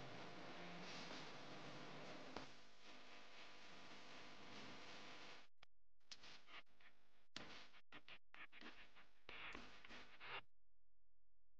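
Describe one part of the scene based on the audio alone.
A cotton pad rubs softly along a leather strap.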